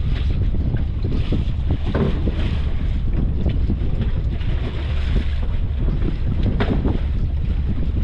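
Plastic crates knock on a boat deck.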